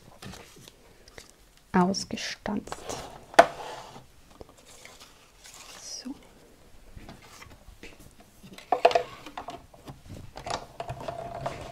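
Paper rustles and slides as it is handled.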